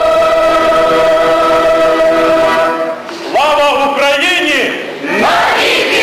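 A mixed choir of men and women sings a long, held chord, then a bright sliding melody.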